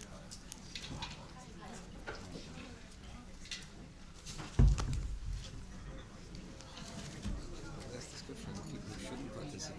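A crowd of people murmurs in a large hall.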